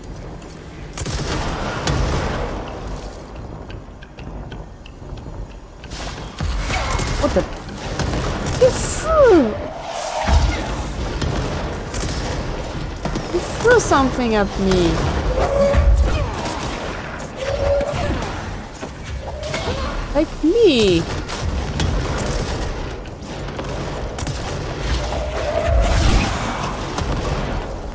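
Gunshots crack and boom in rapid bursts.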